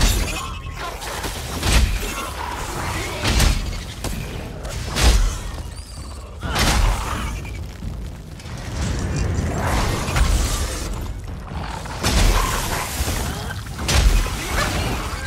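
Blades slash and strike in combat.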